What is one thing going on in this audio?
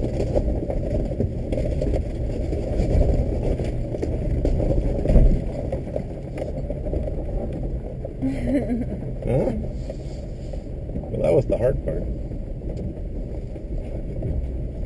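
Tyres crunch and rumble over a rough dirt track.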